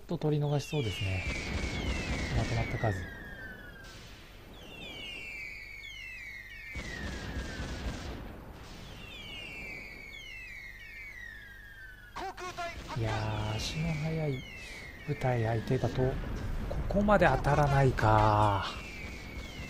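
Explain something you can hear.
Naval guns fire in heavy bursts.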